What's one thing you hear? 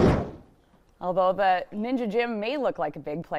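A woman speaks brightly into a microphone.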